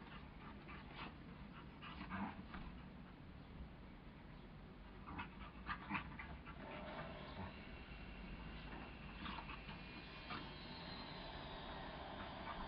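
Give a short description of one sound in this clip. A dog yips and growls playfully.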